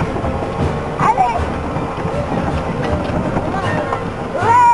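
A child squeals with excitement nearby.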